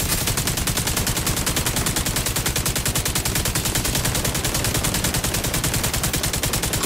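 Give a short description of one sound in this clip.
An automatic rifle fires in rapid, steady bursts.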